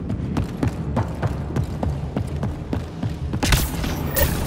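Heavy boots thud quickly on a metal floor.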